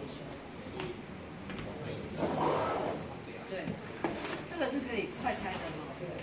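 Latches click and a plastic case knocks as it is opened.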